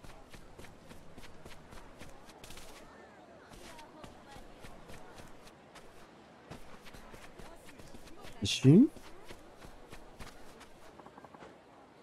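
Footsteps run quickly over wooden boards and packed dirt.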